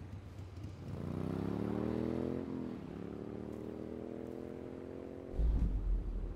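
A motorbike engine revs and drives off.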